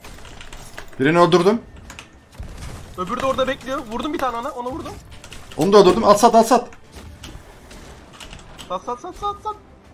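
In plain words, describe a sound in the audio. A man talks with animation into a microphone, close by.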